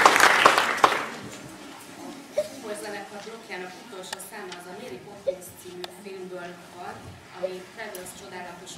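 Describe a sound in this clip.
A woman speaks calmly to an audience, a little distant.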